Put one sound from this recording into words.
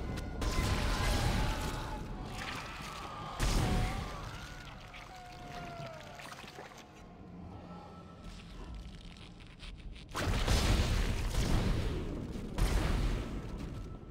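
A futuristic gun fires in loud, booming bursts.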